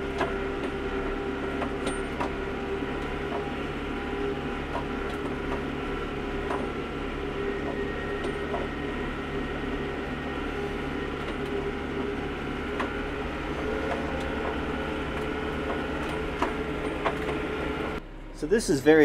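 A tractor engine drones steadily.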